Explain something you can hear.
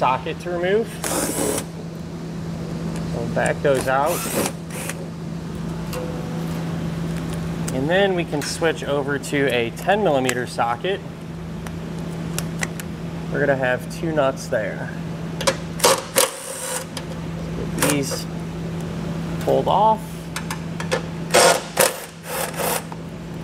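A cordless impact driver whirs in short bursts.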